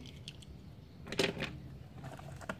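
A small toy car clacks down onto a wooden tabletop.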